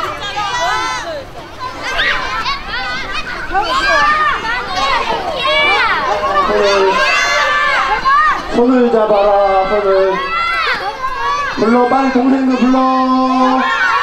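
Many children shout and chatter excitedly nearby outdoors.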